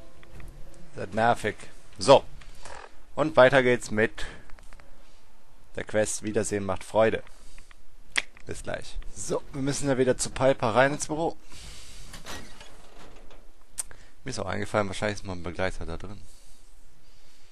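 A man talks calmly and closely into a headset microphone.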